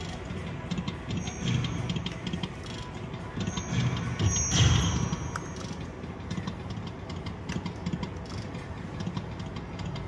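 A slot machine plays bright electronic jingles and chimes.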